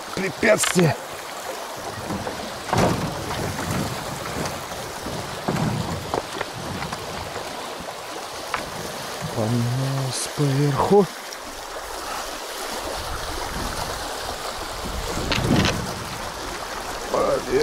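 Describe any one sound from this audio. A paddle splashes and dips into the water.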